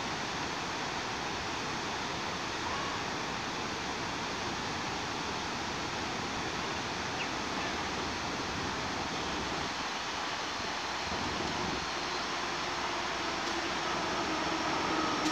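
Wind rushes steadily outdoors.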